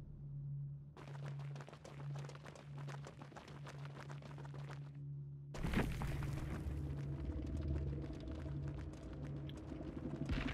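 Several people run with quick footsteps on the ground.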